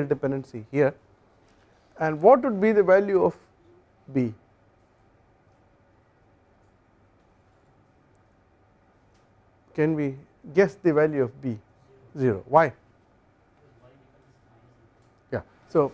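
A man lectures calmly, close by, with pauses between phrases.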